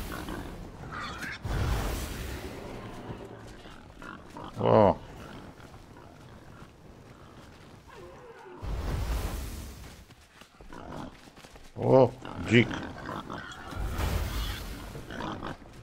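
A staff swings and strikes a beast with heavy thuds.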